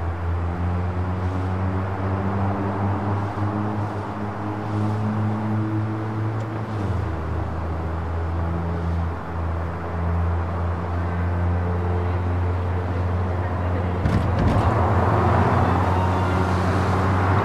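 Tyres roll on a road surface.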